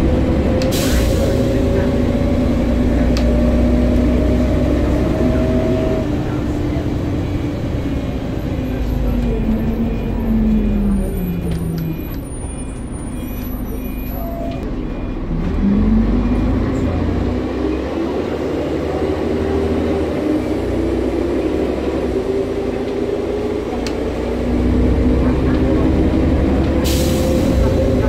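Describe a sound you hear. A bus engine whines, falling in pitch as the bus slows and rising again as it pulls away.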